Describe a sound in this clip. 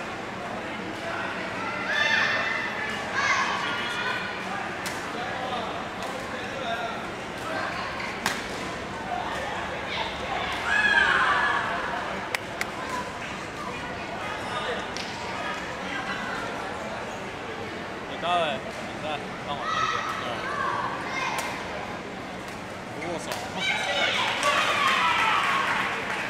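Men call out and chatter in the background, echoing around the hall.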